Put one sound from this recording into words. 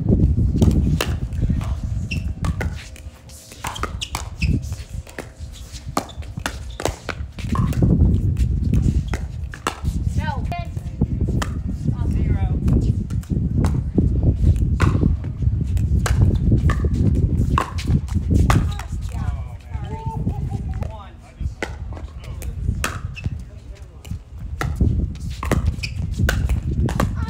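Paddles pop sharply against a plastic ball in a fast rally.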